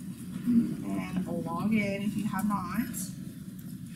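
A young woman speaks briefly and calmly.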